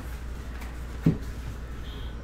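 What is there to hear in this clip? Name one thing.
A cardboard box knocks onto a table.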